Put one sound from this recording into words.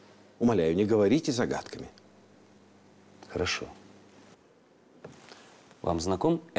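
A middle-aged man speaks firmly and close by, in short phrases.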